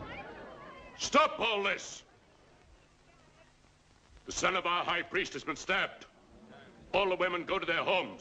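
A man speaks urgently and loudly, close by.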